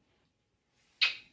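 A woman blows a kiss with a short breathy smack.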